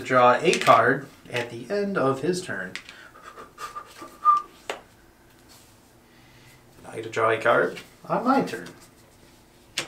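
Playing cards slide and tap on a tabletop.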